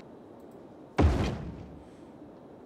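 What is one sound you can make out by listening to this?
A game sounds a soft thud as a road piece is placed.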